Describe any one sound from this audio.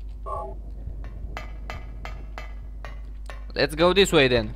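Footsteps clank steadily on a metal grate.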